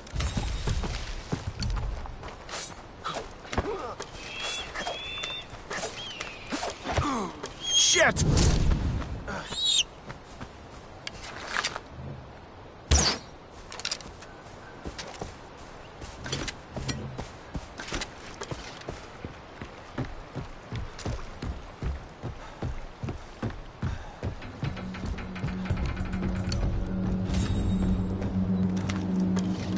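Footsteps crunch steadily on grass and dirt.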